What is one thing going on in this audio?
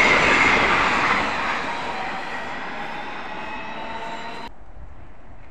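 A high-speed train rushes past close by with a loud roar that slowly fades.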